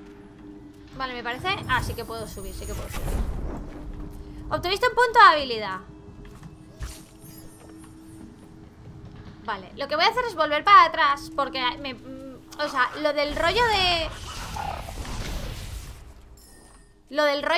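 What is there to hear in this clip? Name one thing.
A young woman talks animatedly into a close microphone.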